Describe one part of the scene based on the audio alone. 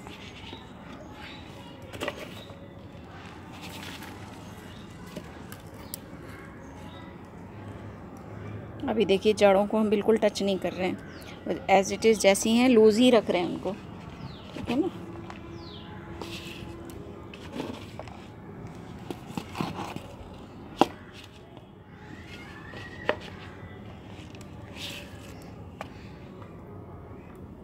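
Hands press and pat loose soil with soft crunching.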